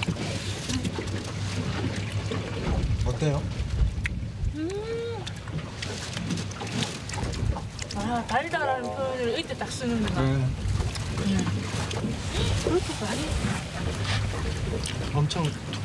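Men talk casually outdoors.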